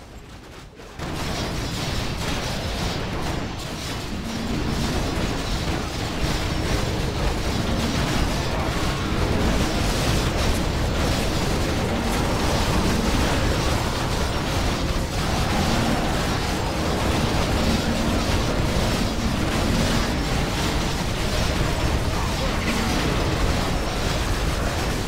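Magic spells crackle and zap over and over.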